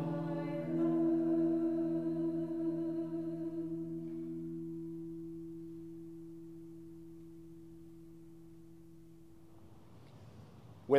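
A small choir holds a final sung chord that slowly fades away.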